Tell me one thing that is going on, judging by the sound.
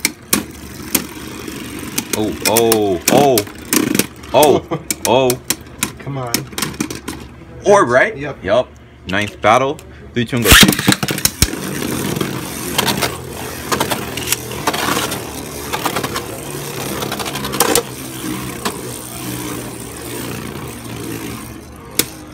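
Spinning tops whir and scrape around a plastic bowl.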